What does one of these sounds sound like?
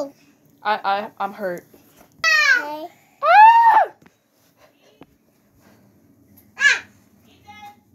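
A young child babbles and squeals excitedly close by.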